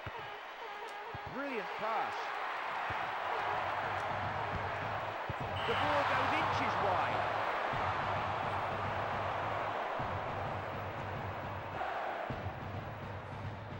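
A crowd cheers and roars.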